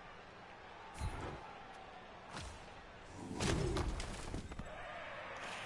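Armoured players crash together with heavy thuds.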